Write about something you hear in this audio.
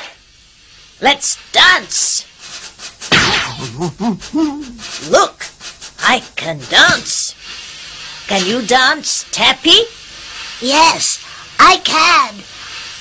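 A young woman speaks cheerfully in a cartoon voice.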